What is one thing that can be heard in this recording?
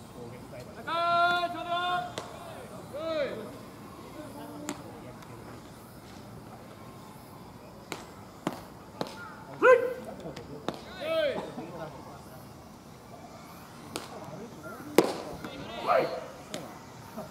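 Young men shout calls from across an open field.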